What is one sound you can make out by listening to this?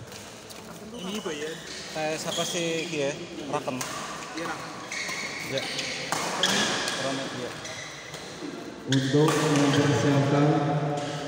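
Men talk and shout nearby.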